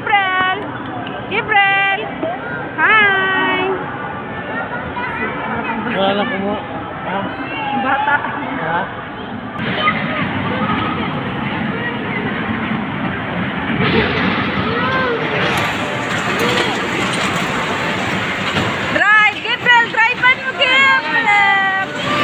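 A young child squeals and chatters close by.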